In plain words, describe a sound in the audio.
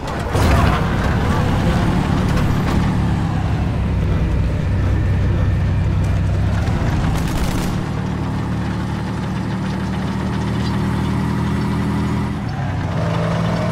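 A heavy tank engine rumbles steadily as the tank drives along.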